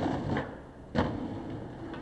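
A skateboard clatters as it slaps the ground.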